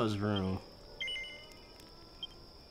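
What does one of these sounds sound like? A short electronic chime rings as a message pops up.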